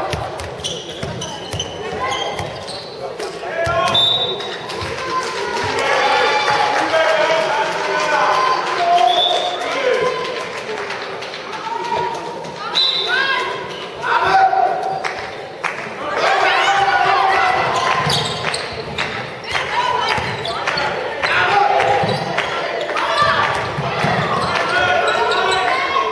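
A handball bounces on the floor.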